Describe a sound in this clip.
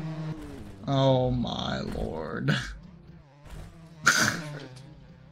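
A motorbike crashes with loud thuds and scrapes.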